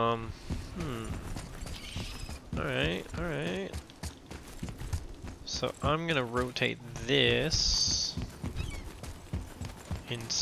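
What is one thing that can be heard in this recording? Heavy footsteps run quickly over stone.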